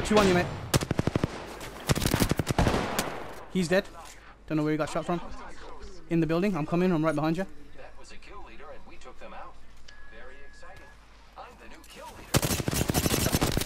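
A rifle fires rapid bursts of loud shots.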